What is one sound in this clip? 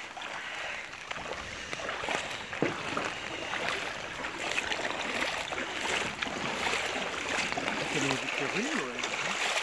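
Feet slosh and splash through shallow water.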